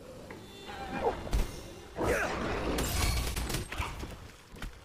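A sword strikes and slashes in a fight.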